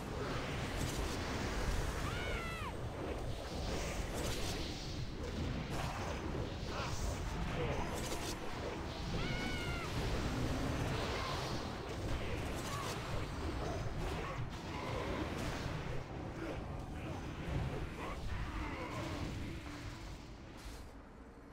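Spells and weapons clash in a busy fantasy battle.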